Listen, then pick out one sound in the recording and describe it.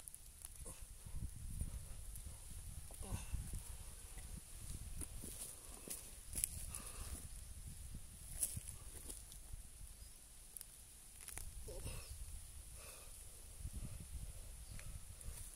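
A small trowel scrapes and digs into soft soil.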